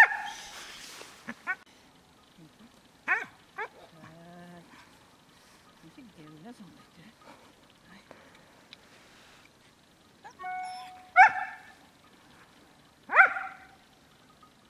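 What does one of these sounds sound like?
A spaniel yelps and barks in short, high bursts.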